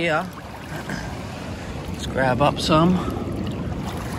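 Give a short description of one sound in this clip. A hand splashes in shallow water.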